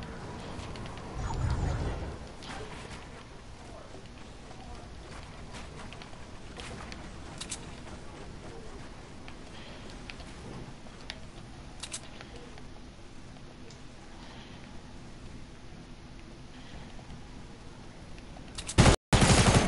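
Game building pieces clatter and thud in quick bursts.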